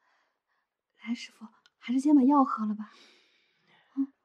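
A young woman speaks softly and gently, close by.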